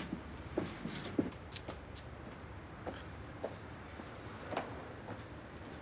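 High heels click on pavement.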